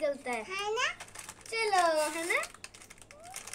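A young girl speaks close by in a high, playful, sing-song voice.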